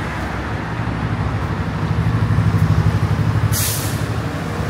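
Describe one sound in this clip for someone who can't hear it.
A motorbike passes close by, its engine growing louder.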